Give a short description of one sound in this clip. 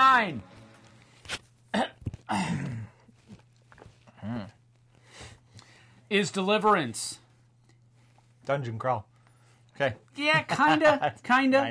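A middle-aged man speaks with animation close to a microphone.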